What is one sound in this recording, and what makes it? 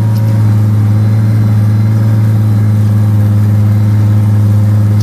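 A tractor engine drones steadily up close.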